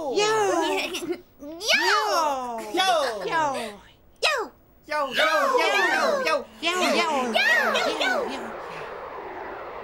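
Several high-pitched, childlike voices babble and chatter with animation close by.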